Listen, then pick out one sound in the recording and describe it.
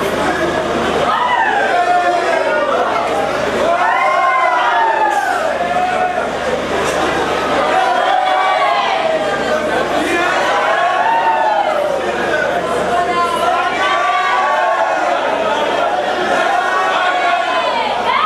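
An elderly man recites in a loud, chanting voice through a microphone and loudspeakers.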